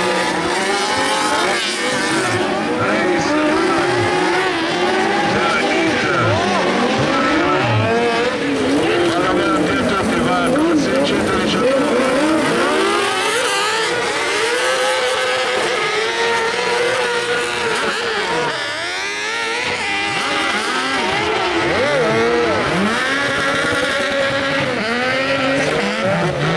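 Several racing buggy engines rev hard and whine, rising and falling in pitch as the cars race past.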